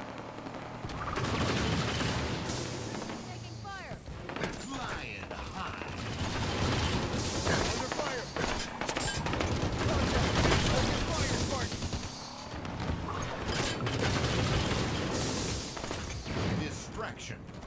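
A heavy machine gun fires in rapid, loud bursts.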